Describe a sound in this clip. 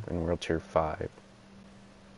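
A man speaks briefly and with animation into a microphone.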